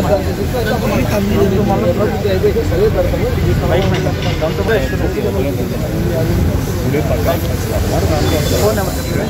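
Several men talk over one another loudly and with animation, close by outdoors.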